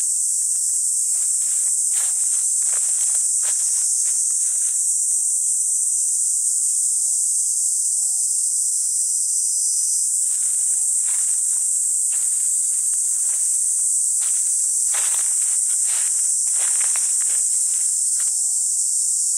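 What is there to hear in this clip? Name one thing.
Wind rustles through grass and leaves outdoors.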